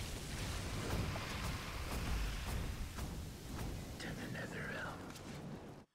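Sharp hits and spell impacts strike repeatedly.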